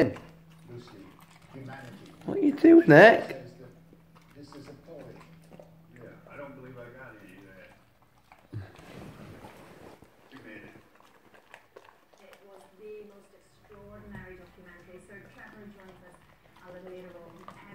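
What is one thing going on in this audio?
A dog chews a banana peel with wet, smacking bites.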